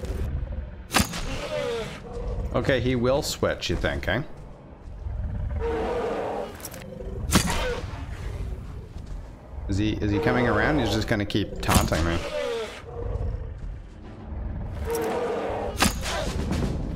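A bowstring snaps as arrows are loosed, several times.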